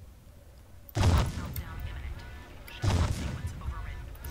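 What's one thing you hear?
Heavy weapon blasts boom and rumble.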